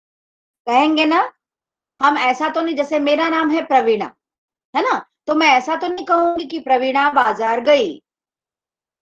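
A middle-aged woman speaks calmly, as if explaining, heard through an online call.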